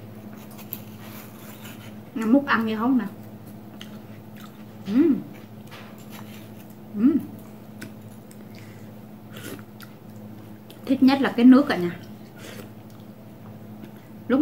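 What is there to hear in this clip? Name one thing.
A spoon scrapes and clinks against a watermelon rind.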